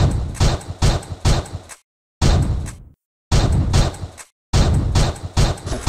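Rapid blaster shots fire in a video game.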